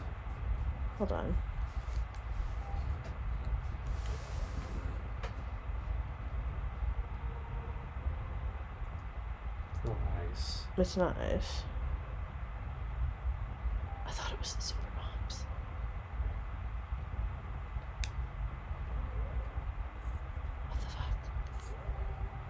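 A game's menu blips and chimes as pages change.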